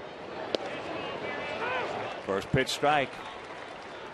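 A crowd cheers and whistles briefly.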